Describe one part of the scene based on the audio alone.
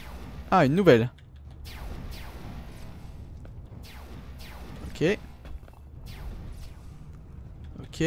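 A jet thruster whooshes in short bursts.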